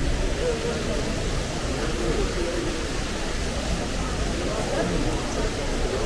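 Many men and women chatter nearby, outdoors.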